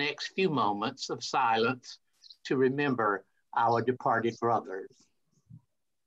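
A man speaks animatedly over an online call.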